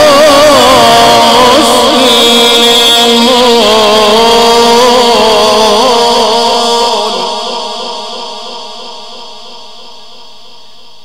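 A middle-aged man chants in a long, wavering voice through a loudspeaker, echoing in a large room.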